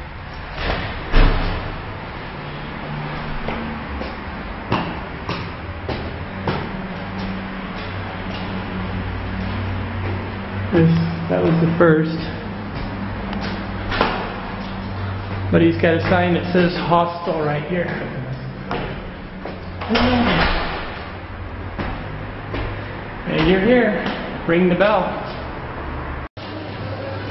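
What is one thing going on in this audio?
Footsteps climb stone stairs in an echoing stairwell.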